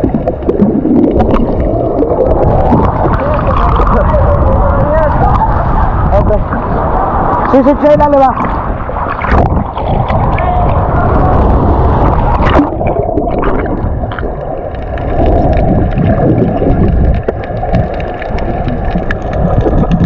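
Bubbles gurgle in muffled water.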